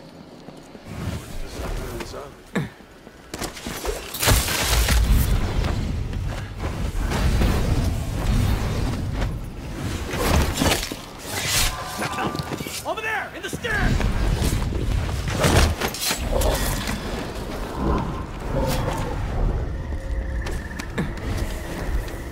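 Crackling magical blasts whoosh loudly.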